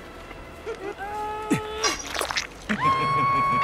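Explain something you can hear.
A young woman screams in pain.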